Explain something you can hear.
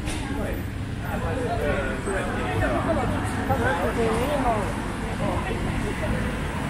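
A man talks nearby in a lively way.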